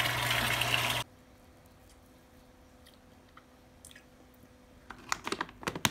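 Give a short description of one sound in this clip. A plastic spatula softly scrapes and mashes food in a bowl.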